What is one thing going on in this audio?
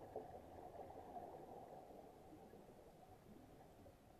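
Exhaled scuba bubbles gurgle and rush upward underwater.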